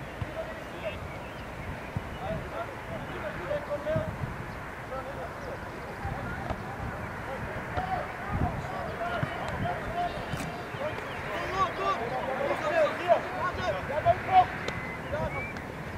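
Teenage boys shout to each other across an open outdoor field.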